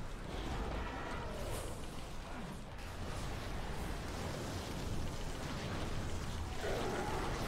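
Magic spells whoosh and crackle in a busy video game battle.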